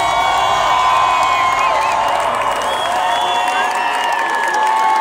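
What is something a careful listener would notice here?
A large crowd screams and cheers loudly in a big open space.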